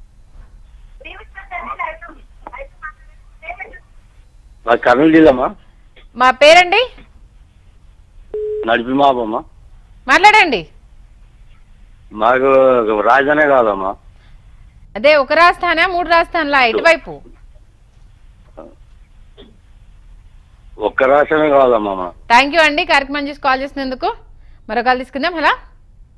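A young woman reads out the news through a microphone.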